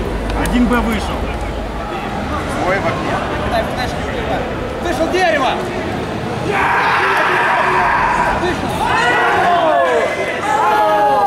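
A crowd of young men chatters in a large, noisy hall.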